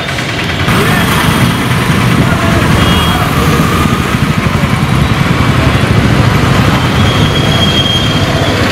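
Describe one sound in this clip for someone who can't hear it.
Motorbikes and scooters pass by on a busy street.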